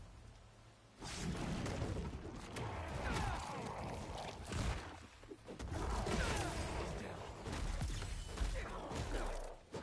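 Heavy punches and blows thud and crash in a fight.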